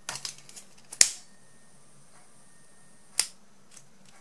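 A lighter clicks as it is struck.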